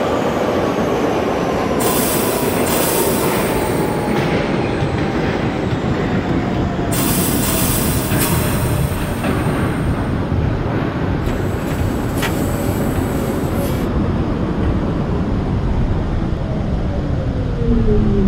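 A subway train rumbles along the tracks with a steady low roar.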